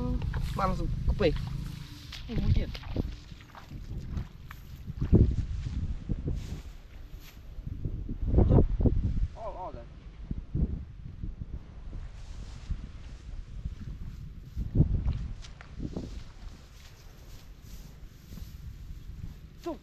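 Footsteps crunch through dry straw and squelch in wet mud.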